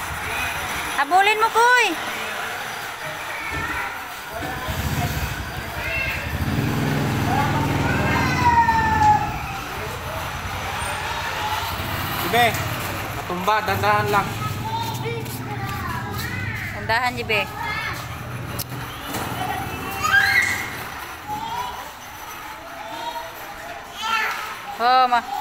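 Young children shout and squeal with high voices close by.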